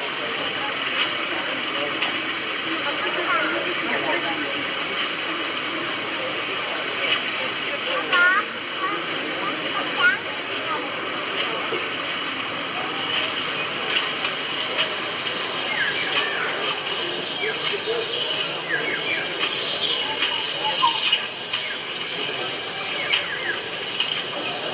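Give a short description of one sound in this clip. A model train rumbles softly along its track.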